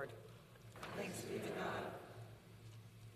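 A woman speaks briefly through a microphone in a reverberant room.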